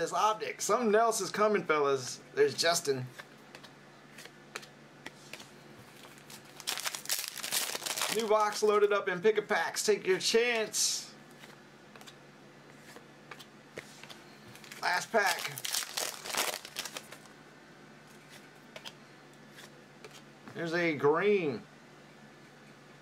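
Trading cards flick and tap against each other.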